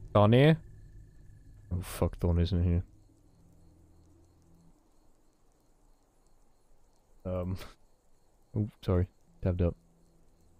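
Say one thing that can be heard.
Torches crackle and hiss softly.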